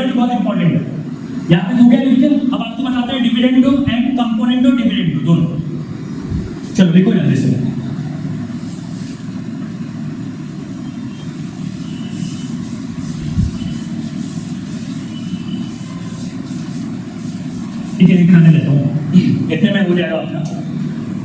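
A man speaks with animation, as if explaining to a class.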